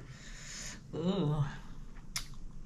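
A woman murmurs softly, close to a microphone.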